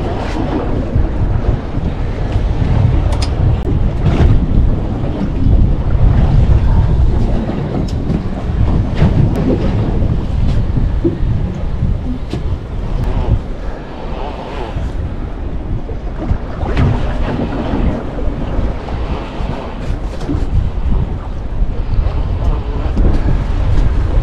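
Wind gusts across open water.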